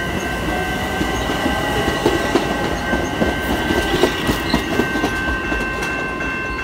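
Wheels clatter over rail joints.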